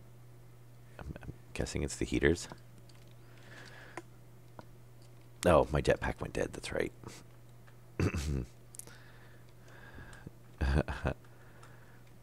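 A man talks calmly into a close microphone in short bursts.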